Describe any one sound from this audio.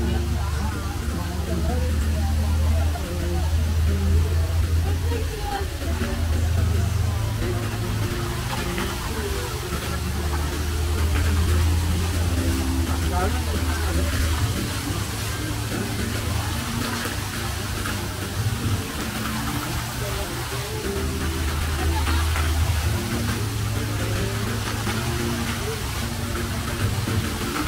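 Water splashes and rushes steadily down a wall and out of fountain jets.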